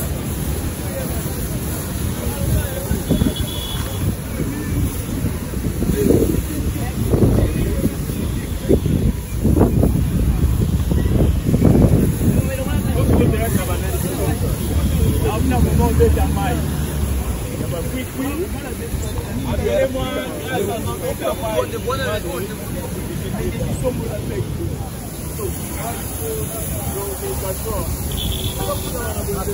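A pressure washer sprays water, hissing against a car.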